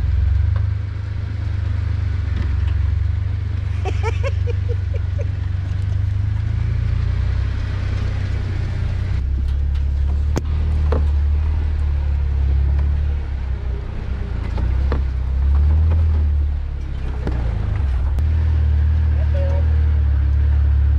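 An off-road vehicle's engine rumbles steadily up close.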